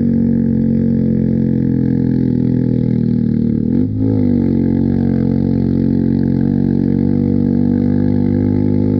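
A motorcycle engine hums steadily close by, shifting gear once.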